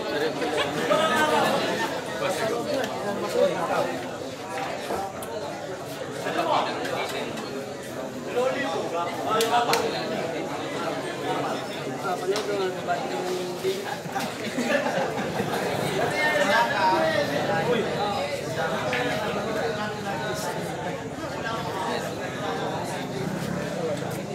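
A crowd of men chatter and murmur nearby.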